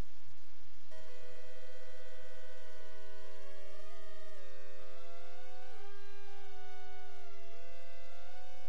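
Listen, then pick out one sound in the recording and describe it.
An electronic device hums with steady tones that step up and down in pitch.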